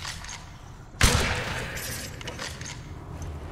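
A musket fires a single loud shot that echoes.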